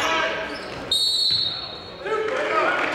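A referee's whistle blows one short, shrill blast.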